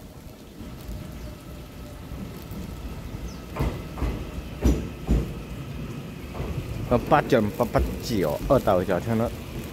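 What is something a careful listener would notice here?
A train rolls into the station with a rising rumble.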